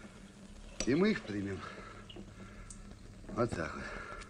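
A knife and fork scrape on a plate.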